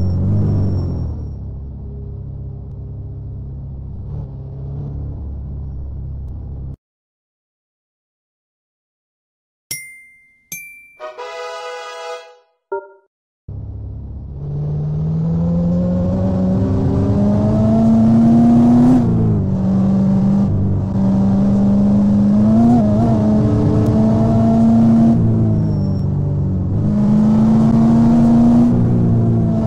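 A simulated SUV engine hums in a mobile driving game.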